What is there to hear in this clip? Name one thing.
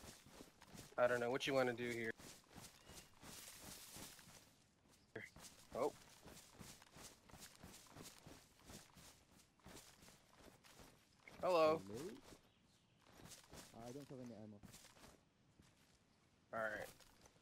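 A man talks into a close microphone with animation, in short bursts.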